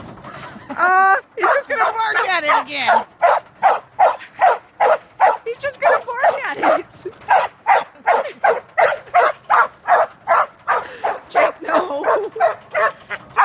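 A small dog barks excitedly over and over, close by.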